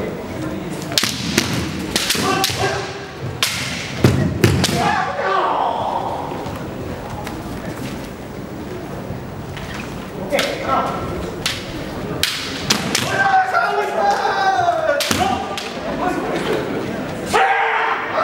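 Bare feet stamp and slide on a wooden floor.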